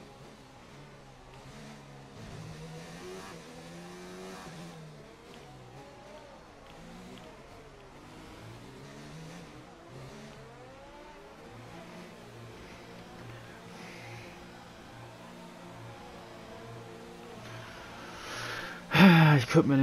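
A racing car engine whines, rising and falling in pitch as it speeds up and slows down.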